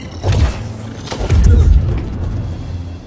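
A lightsaber clashes loudly against rock.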